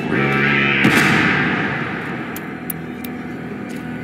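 A magical swirl hums and crackles loudly.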